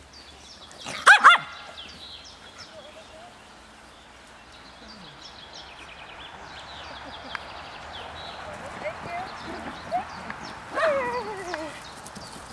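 A dog barks loudly nearby.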